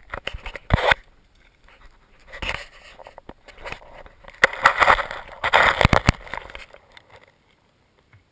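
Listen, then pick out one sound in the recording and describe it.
Something rustles and scrapes close by on dry, gravelly ground, then goes quiet.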